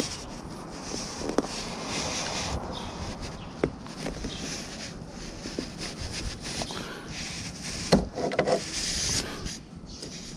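A wrench clicks and taps against metal as a bolt is tightened.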